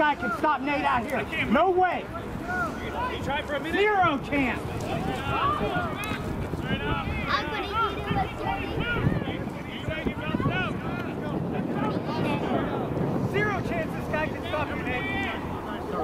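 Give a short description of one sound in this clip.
Young men shout and call to each other outdoors on an open field.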